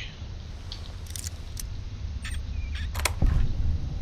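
A bobby pin scrapes and clicks inside a lock.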